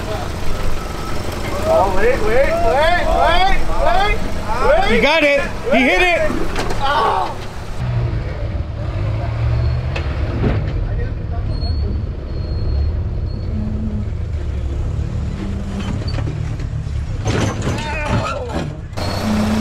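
An off-road vehicle's engine rumbles low as it crawls over rocks.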